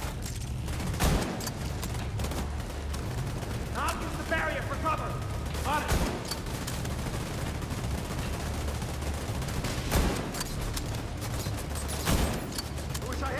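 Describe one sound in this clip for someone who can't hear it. Rifle shots ring out one at a time, with a short echo.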